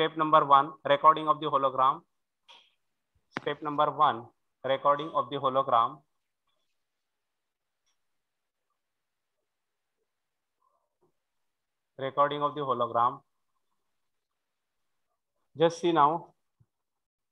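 A man speaks calmly through a microphone, explaining in short phrases with pauses.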